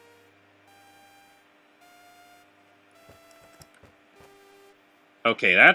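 Soft electronic game tones chime and hum.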